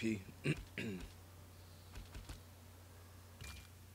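Menu selections click and blip.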